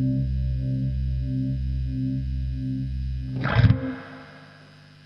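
An electric guitar plays loud, distorted chugging chords through an amplifier, ending with a crash.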